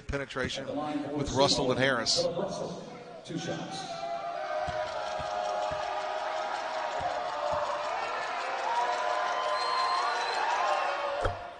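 A crowd shouts and cheers in a large echoing gym.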